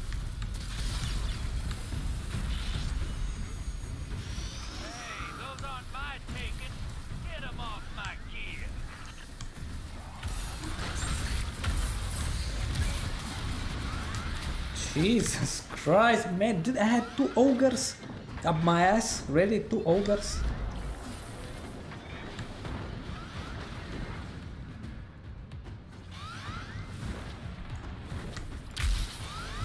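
Gunfire and blasts from a video game crackle and boom.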